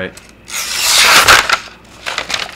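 A sheet of paper rustles and swishes past close by.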